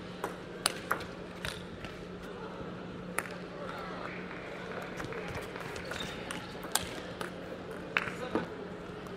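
A table tennis ball clicks sharply off paddles and the table in a quick rally.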